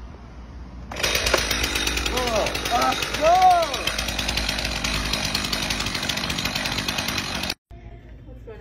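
A chainsaw engine runs loudly and cuts through wood.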